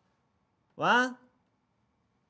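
A young man says a short phrase warmly, close by.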